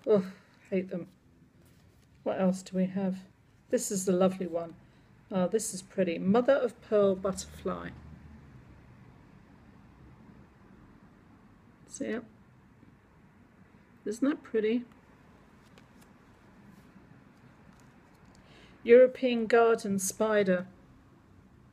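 An elderly woman speaks calmly and close by, in short bursts with pauses.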